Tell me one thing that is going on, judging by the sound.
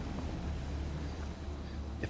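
Footsteps scuff on pavement.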